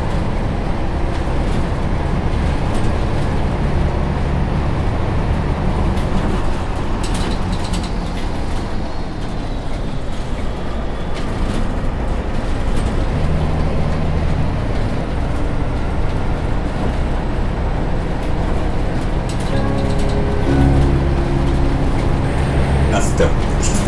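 A diesel city bus engine hums while driving along a road.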